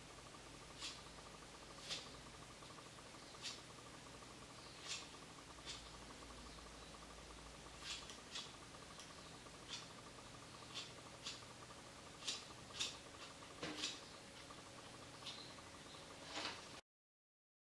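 Scissors snip through hair in short, crisp cuts.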